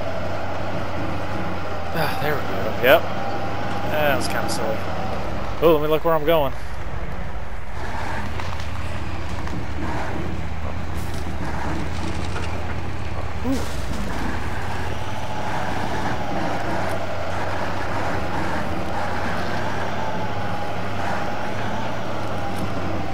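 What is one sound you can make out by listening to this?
A truck engine rumbles steadily as the truck crawls over rough ground.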